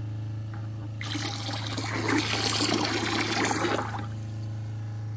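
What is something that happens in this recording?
Water gushes from a hose into a plastic bucket.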